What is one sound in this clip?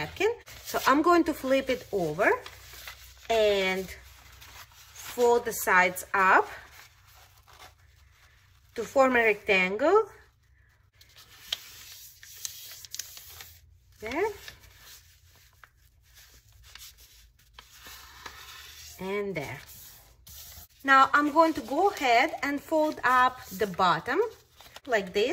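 Paper rustles and crinkles as it is folded and pressed flat.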